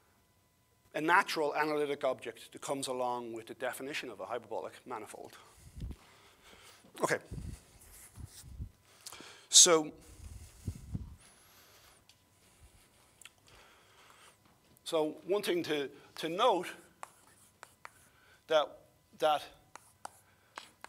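A man lectures with animation.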